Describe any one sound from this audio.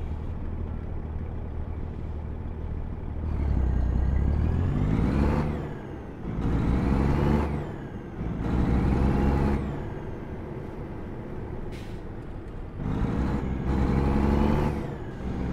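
A truck engine rumbles low and steady, then revs up and down repeatedly as the truck drives.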